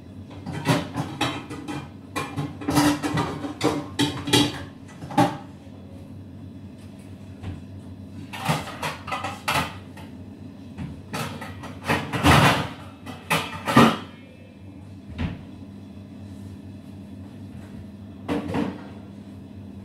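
Hands scrunch and pat dry flour dough on a metal counter.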